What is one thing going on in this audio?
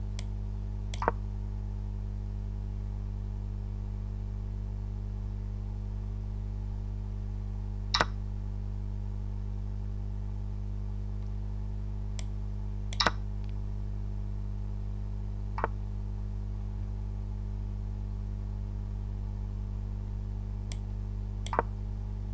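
Short wooden clicks sound as chess pieces are moved.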